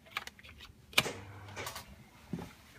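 A plastic key card slides into a wall slot.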